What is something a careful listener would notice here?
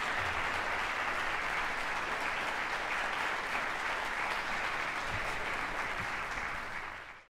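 An audience applauds loudly in a large echoing hall.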